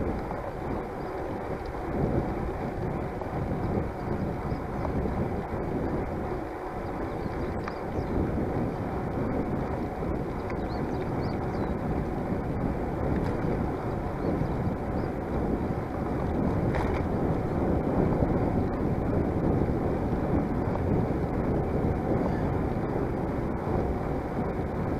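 Bicycle tyres roll and hum on a paved path.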